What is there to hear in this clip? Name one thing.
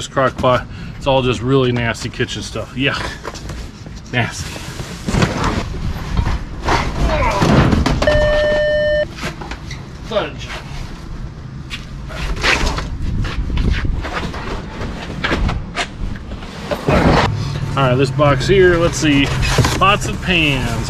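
Cardboard boxes rustle and scrape as they are handled.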